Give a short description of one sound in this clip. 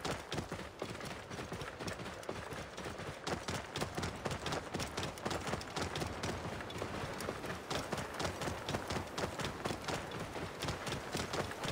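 Wind blows across open ground.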